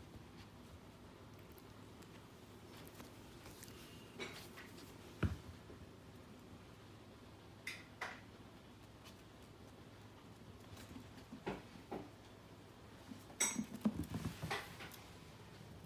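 Puppies scuffle and tumble playfully.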